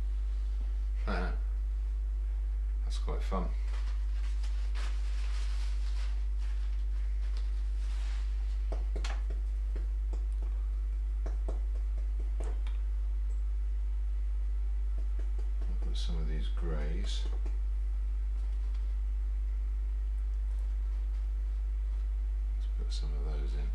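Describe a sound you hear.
A middle-aged man mumbles quietly to himself.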